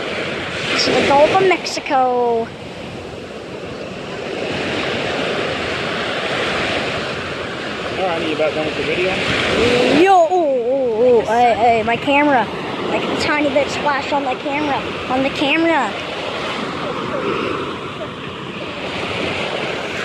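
Waves break and wash up onto a beach.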